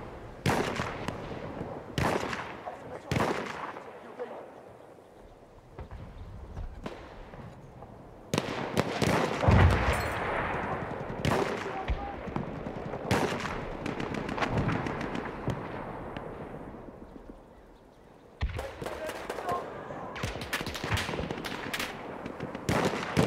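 A heavy machine gun fires in rapid bursts close by.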